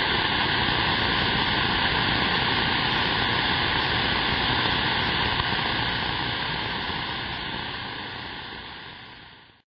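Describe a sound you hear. Static hisses steadily from a radio receiver, then fades away.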